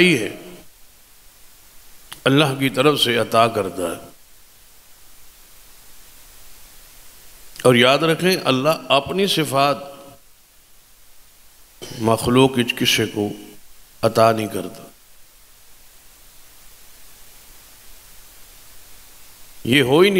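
An elderly man speaks slowly and with feeling into a microphone, in bursts with long pauses.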